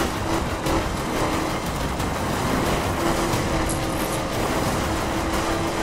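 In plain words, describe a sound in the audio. Tyres skid and crunch over dirt and grass.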